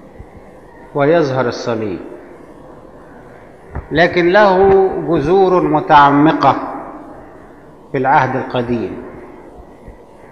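An elderly man speaks calmly and slowly into a microphone, with pauses.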